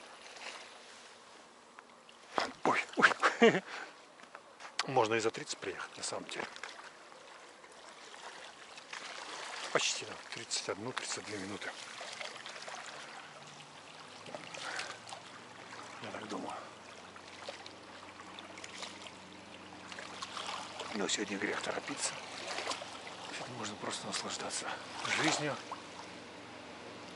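A river flows gently outdoors.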